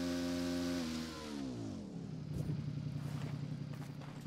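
A rider and motorbike tumble and clatter onto the ground.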